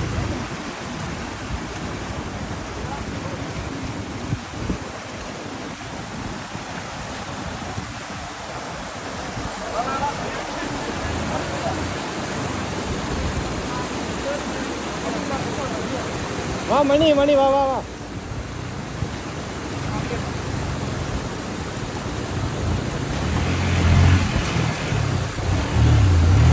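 Water trickles and splashes over rocks.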